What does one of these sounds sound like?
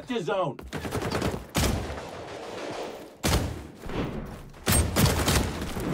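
An assault rifle fires in short bursts.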